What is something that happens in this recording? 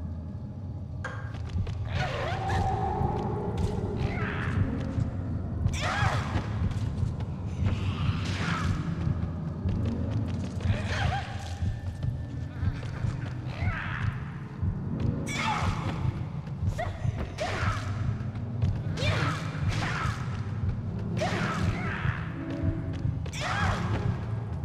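Sharp blows and thuds land again and again in a struggle.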